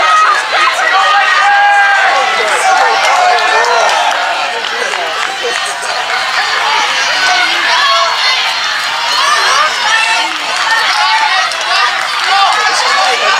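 A crowd of spectators cheers and shouts encouragement outdoors.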